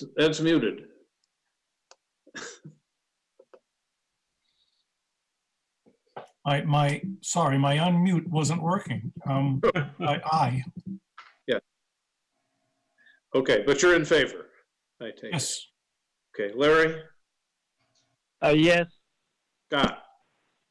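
An older man speaks calmly over an online call, in short bursts with pauses.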